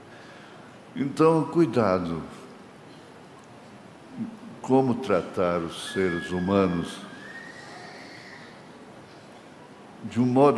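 An elderly man speaks slowly and solemnly into a microphone, with pauses.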